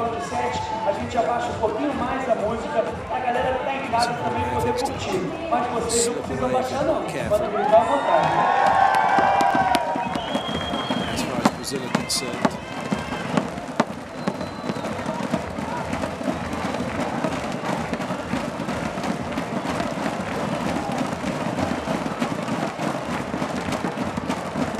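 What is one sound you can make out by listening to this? A large crowd cheers and chatters in an open stadium.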